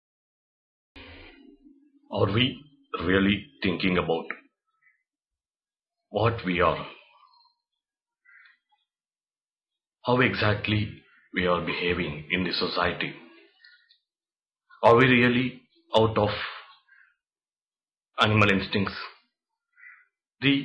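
A young man speaks calmly and slowly, close to the microphone, with long pauses.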